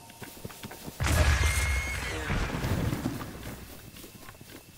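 A loud thump bursts with a puff and then fades.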